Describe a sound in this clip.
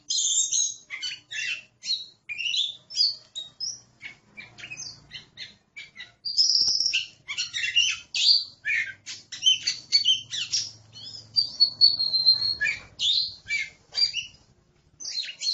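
A songbird sings a varied, rapid song of whistles and chirps close by.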